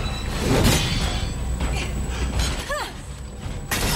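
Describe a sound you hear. A heavy suit of armour clanks.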